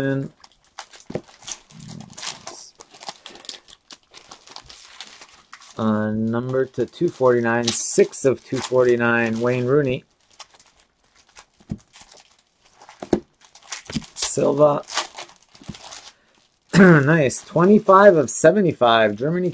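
Trading cards rustle and snap as hands flip through them.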